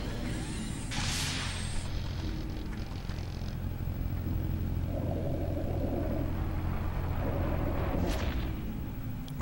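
An electric machine hums steadily.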